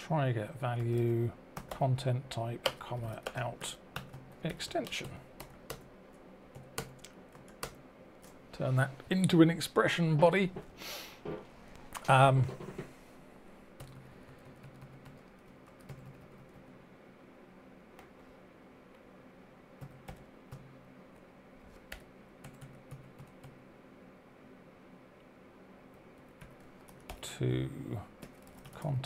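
Keyboard keys click in quick bursts.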